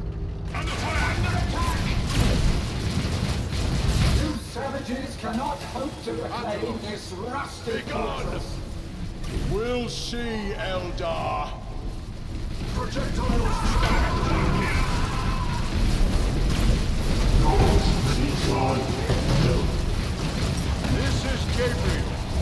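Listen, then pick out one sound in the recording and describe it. Explosions boom in a game battle.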